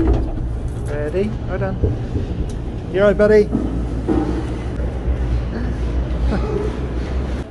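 A vehicle engine idles with a low steady rumble.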